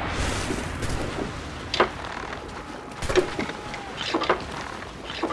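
Cannons boom and explode nearby.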